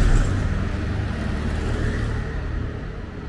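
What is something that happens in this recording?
A motor scooter rides past.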